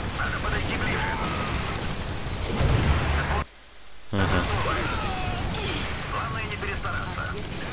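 Explosions boom amid a battle.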